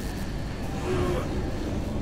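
Electricity crackles and zaps in a short burst.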